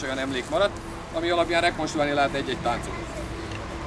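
A man speaks loudly outdoors.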